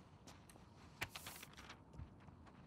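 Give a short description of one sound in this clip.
A sheet of paper rustles as it is picked up.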